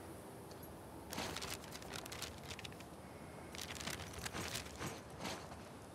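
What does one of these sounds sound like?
A sheet of paper rustles as it is unfolded and handled.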